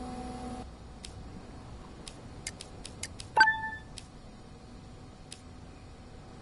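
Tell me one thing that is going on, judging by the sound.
Buttons click several times.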